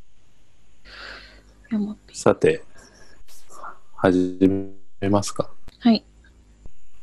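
Young women speak briefly through an online call.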